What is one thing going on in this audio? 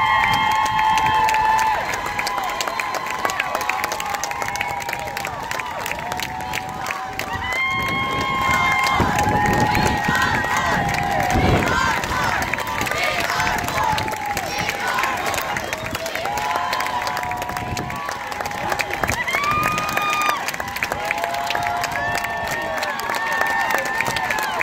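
A large crowd of men and women shouts and chants loudly outdoors.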